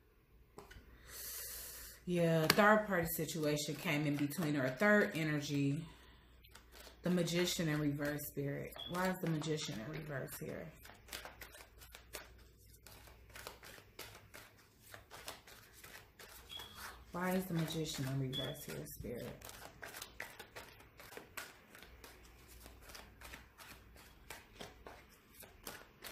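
Paper banknotes rustle and flick as they are counted.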